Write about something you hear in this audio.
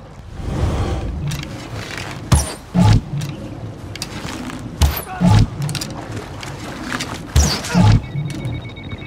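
A bowstring twangs sharply several times.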